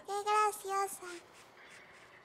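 A small girl speaks in a high voice nearby.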